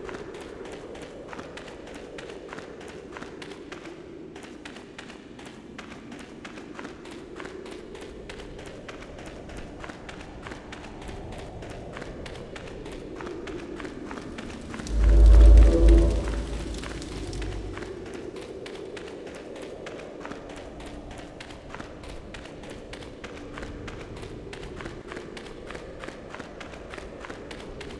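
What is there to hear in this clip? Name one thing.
Footsteps crunch steadily on rough ground.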